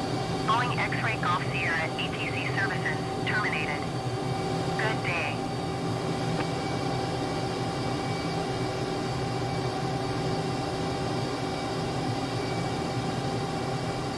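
A jet engine roars steadily from inside a cockpit.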